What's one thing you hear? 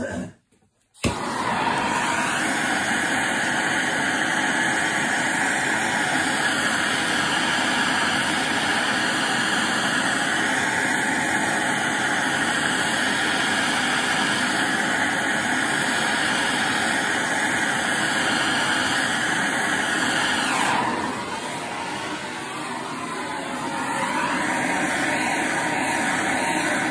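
A blowtorch roars steadily.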